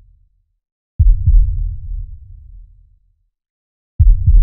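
A deep explosion booms and rumbles away.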